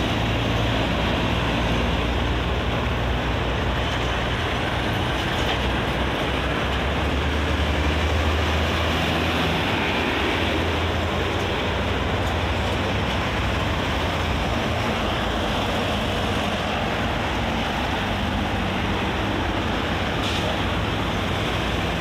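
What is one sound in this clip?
Traffic roars past on a busy road.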